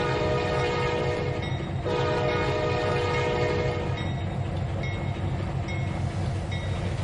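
A diesel locomotive engine idles with a steady hum.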